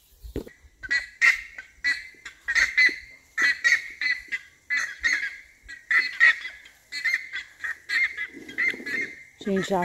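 Birds call with short repeated chirps overhead, outdoors.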